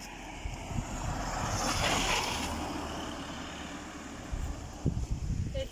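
A car drives past on the road, rising and fading.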